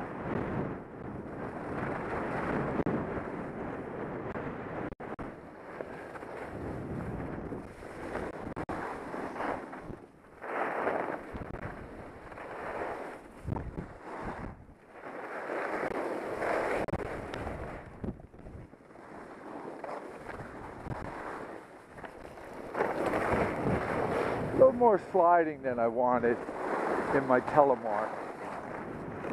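Skis hiss and scrape over snow in surging waves.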